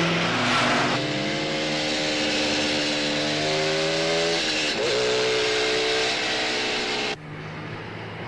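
A motorcycle engine roars steadily and shifts gear while riding.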